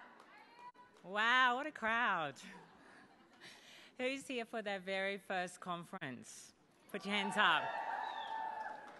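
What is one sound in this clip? A young woman speaks cheerfully into a microphone over loudspeakers.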